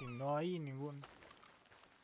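A horse whinnies nearby.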